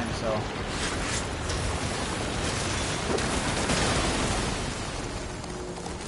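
A blade swishes through the air and strikes.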